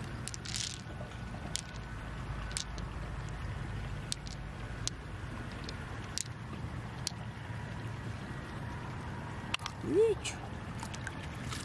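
Glass beads clink softly together in a hand.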